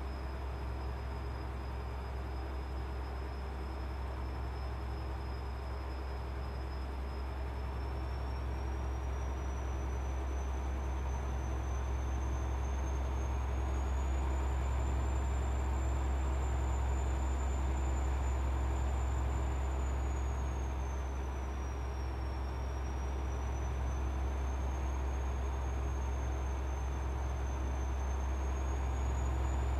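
Tyres hum on a smooth road.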